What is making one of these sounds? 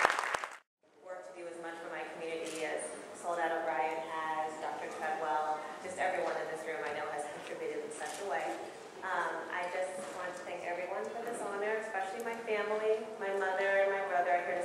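A young woman speaks into a microphone in a large hall.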